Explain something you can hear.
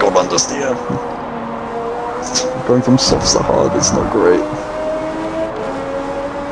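A racing car engine roars steadily at high revs as it speeds up.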